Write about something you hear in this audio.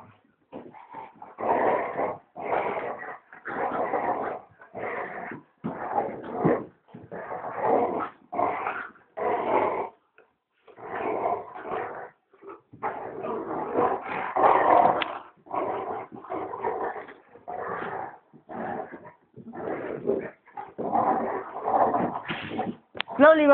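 A dog barks and growls loudly nearby.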